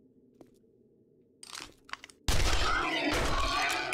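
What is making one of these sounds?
A gun fires a single shot.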